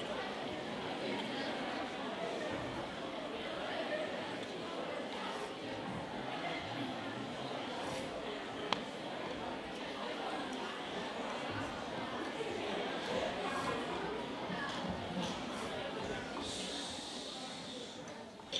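An audience murmurs and chatters in a large hall, then quiets down.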